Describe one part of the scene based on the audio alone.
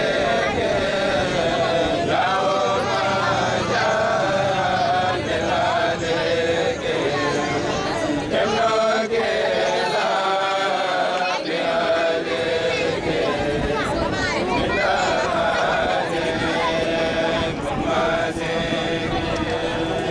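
A group of young men chant together in steady, drawn-out tones outdoors.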